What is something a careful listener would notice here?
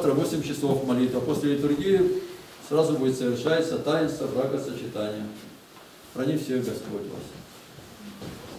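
A group of men and women sing together in an echoing room.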